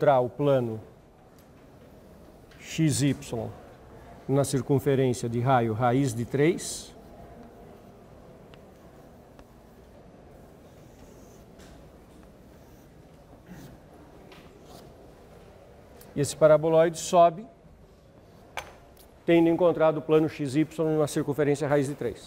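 A middle-aged man speaks calmly into a microphone, lecturing.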